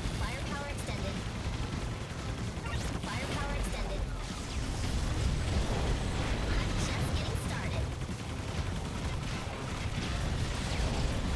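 Video game gunfire and explosions rattle steadily.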